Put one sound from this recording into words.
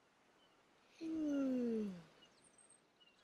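A young boy yawns loudly.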